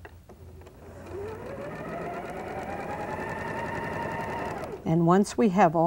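A sewing machine whirs as it stitches, speeding up and then stopping.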